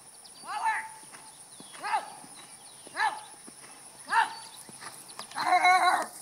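A horse canters on grass with soft, rhythmic hoof thuds.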